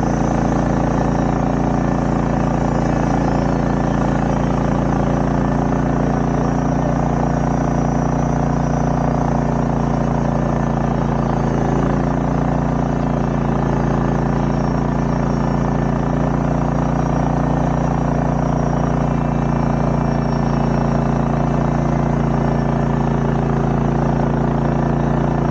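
A sawmill engine drones steadily.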